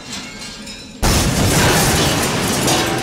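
A large chandelier crashes down and its glass shatters loudly.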